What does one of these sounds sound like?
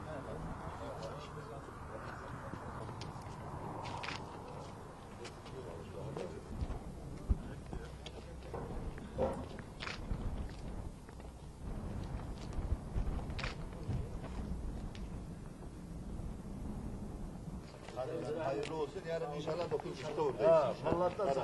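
A crowd of men murmurs and talks outdoors.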